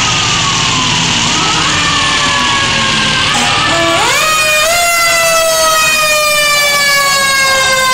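A fire truck siren wails, rising and falling, growing louder.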